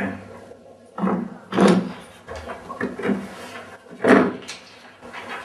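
A woman speaks loudly and with agitation at close range.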